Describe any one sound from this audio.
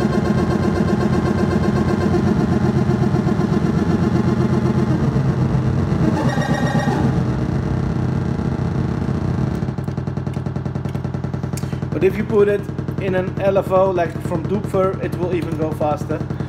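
A modular synthesizer plays a pulsing electronic sequence that shifts in tone as knobs are turned.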